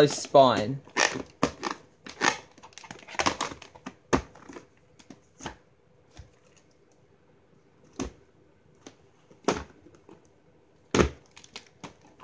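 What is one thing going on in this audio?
A plastic tape case snaps open and shut with sharp clicks.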